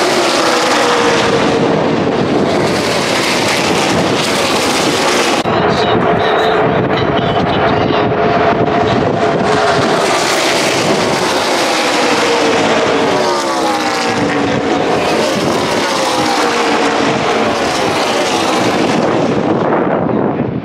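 Race car engines roar loudly past at high speed, rising and falling in pitch.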